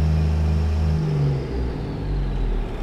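A heavy truck engine revs up and shifts pitch.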